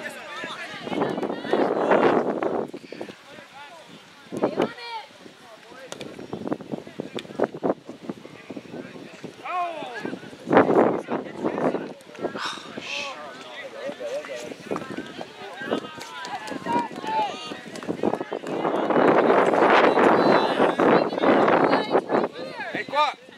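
A crowd of spectators cheers loudly in bursts.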